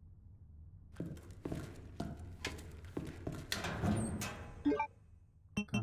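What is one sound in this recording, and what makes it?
Buttons on a keypad click and beep.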